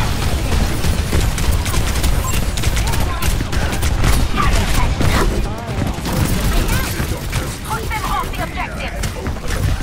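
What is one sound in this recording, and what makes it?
Game explosions and impact effects boom and whoosh.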